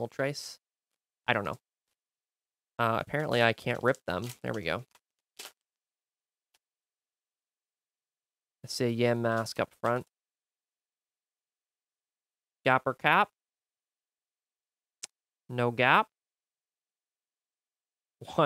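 A young man talks calmly and closely into a microphone.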